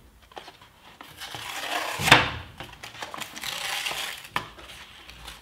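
Plastic packaging crinkles as hands handle it.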